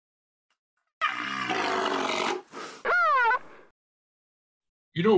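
A man speaks in a playful, exaggerated voice over an online call.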